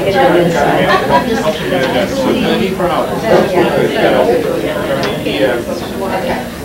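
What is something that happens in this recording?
Several women chatter in the background.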